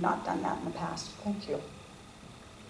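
An elderly woman speaks into a microphone.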